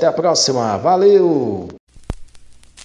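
A singer sings loudly into a microphone.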